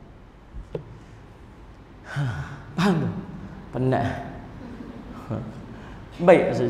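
A middle-aged man speaks with animation into a microphone, in a reverberant hall.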